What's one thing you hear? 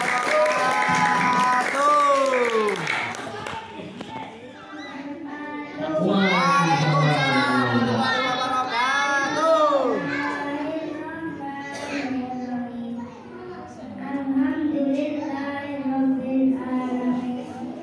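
A young boy chants melodically into a microphone, heard through a loudspeaker with echo.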